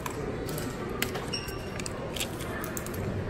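Plastic cards tap lightly onto a hard counter.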